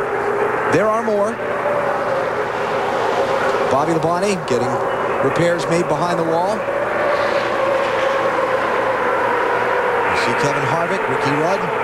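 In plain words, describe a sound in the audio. A pack of race cars roars around a track with a steady engine drone.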